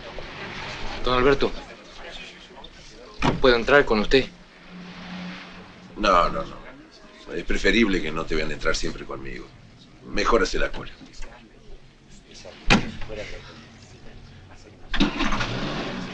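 A man speaks in a low, serious voice nearby.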